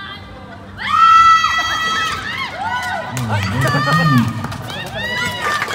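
A crowd of young men cheers and shouts loudly.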